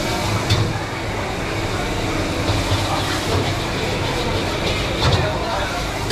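Cooking utensils clatter and knock nearby.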